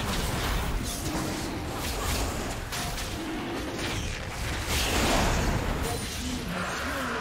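Magic blasts and hits crackle and whoosh in a fast video game battle.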